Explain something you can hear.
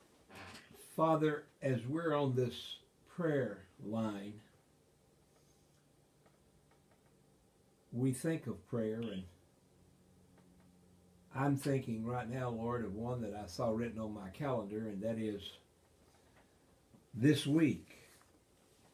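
An elderly man talks calmly and close by, with pauses.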